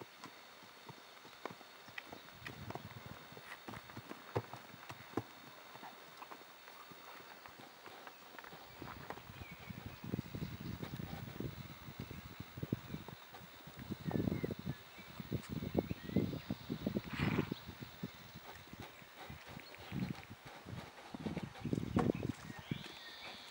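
A horse's hooves thud softly on grassy ground as it walks.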